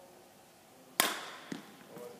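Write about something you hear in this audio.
A badminton racket strikes a shuttlecock with a sharp crack.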